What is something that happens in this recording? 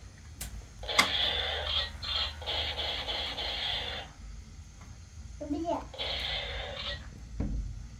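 A toy buzzes with a steady electronic whir.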